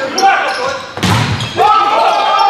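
A volleyball is spiked hard with a sharp smack.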